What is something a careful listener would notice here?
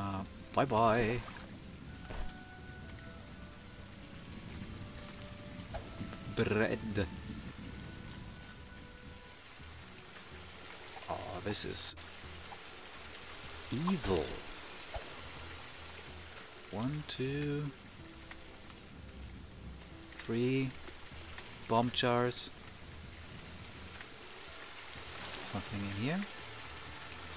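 A man talks into a close microphone in short, casual bursts.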